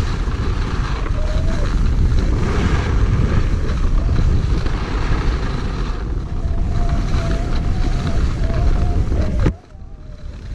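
Wind rushes and buffets loudly close by.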